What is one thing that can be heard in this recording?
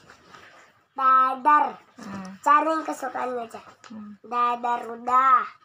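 A young boy reads aloud in a singsong voice close by.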